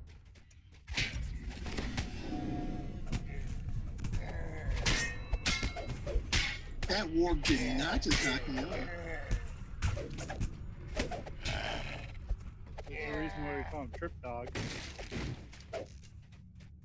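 Weapons clash and strike in a fast fight.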